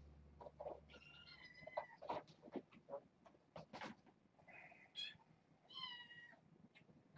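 A cat meows.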